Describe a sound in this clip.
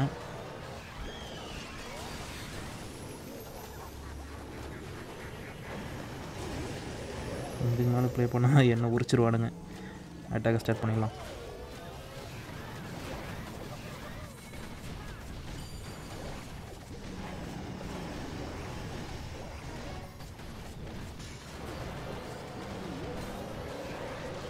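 Game sound effects of explosions and attacks play continuously.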